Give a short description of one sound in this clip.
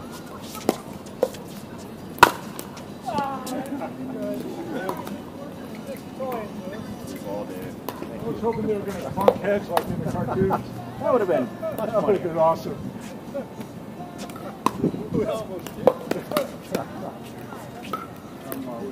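Paddles hit a plastic ball with sharp pops.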